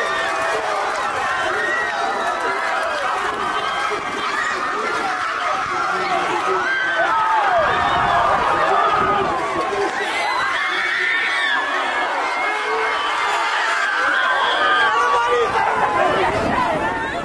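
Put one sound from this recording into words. A large crowd cheers and shouts excitedly outdoors.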